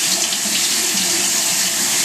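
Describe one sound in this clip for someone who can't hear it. Water drains from a cup and splashes into a steel sink.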